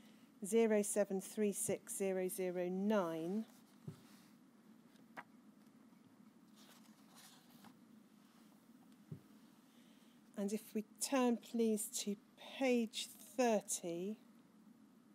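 A woman speaks calmly into a microphone, in short bursts with pauses.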